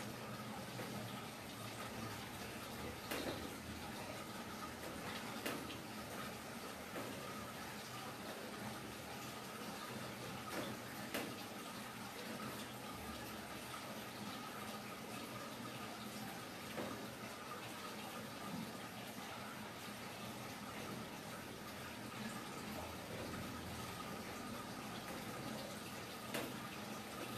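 Steady rain patters on pool water and paving outdoors.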